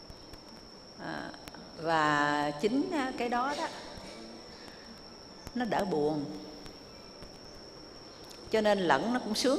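An elderly woman speaks calmly into a microphone, in short phrases with pauses.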